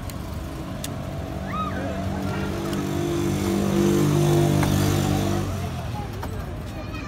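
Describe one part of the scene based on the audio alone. A motorcycle engine rumbles past, growing louder and then fading.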